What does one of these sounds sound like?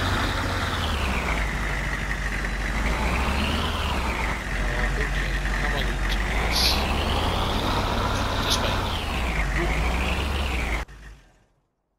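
A truck engine drones and revs up and down as the truck drives along.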